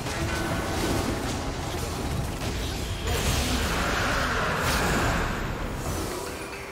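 Game spells crackle and blast during a fight.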